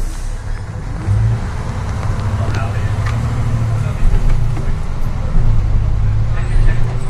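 A bus engine revs up as the bus pulls away.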